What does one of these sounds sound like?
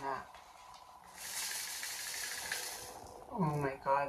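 Small plastic beads rattle and shake in a plastic tray.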